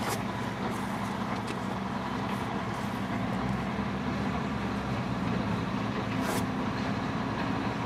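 A motorcycle engine idles steadily nearby.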